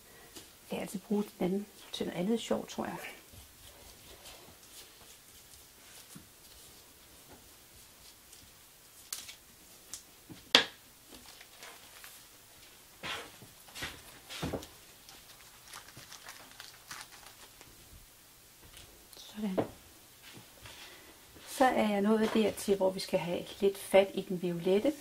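A woman speaks calmly and close by, through a microphone.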